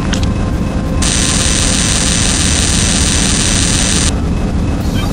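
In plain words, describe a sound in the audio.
A laser hisses and buzzes steadily, then cuts off.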